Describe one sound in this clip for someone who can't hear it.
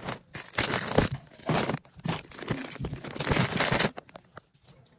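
Plastic snack bags rustle and crinkle.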